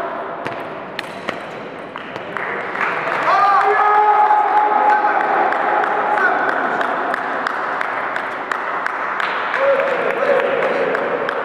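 A table tennis ball clicks back and forth on paddles and the table in a large echoing hall.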